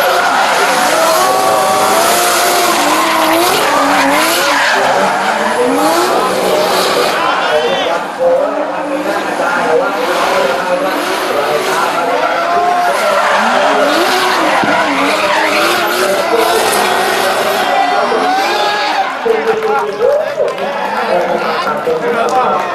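Tyres squeal loudly as cars drift.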